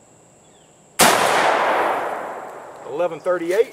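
A shotgun fires a single loud blast outdoors, echoing through the woods.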